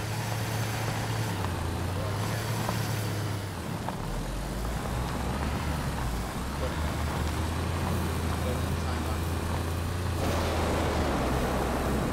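Tyres crunch over gravel.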